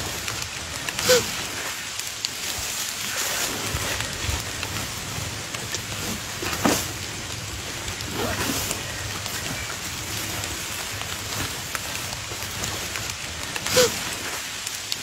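A deer bleats in distress.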